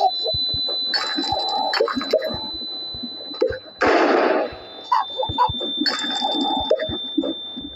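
A spinning magical device hums and whirs.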